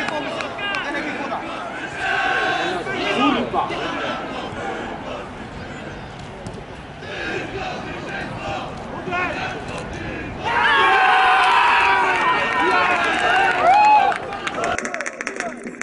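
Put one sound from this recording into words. A crowd of spectators shouts and cheers from a distance outdoors.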